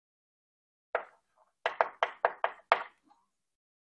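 Chalk taps and scratches on a board in quick strokes.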